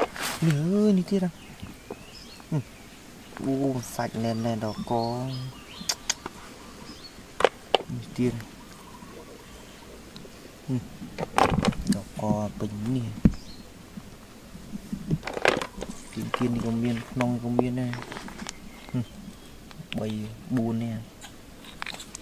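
Snail shells click and knock together as they are handled.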